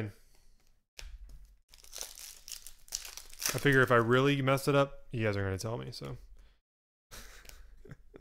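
Foil wrappers crinkle and tear as card packs are opened.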